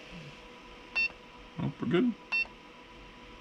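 An electronic device beeps with short high chirps.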